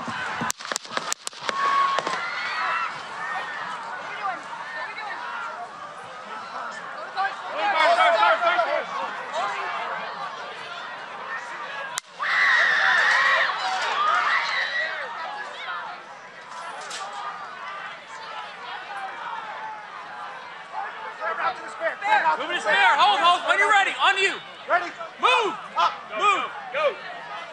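A large outdoor crowd screams and shouts in panic.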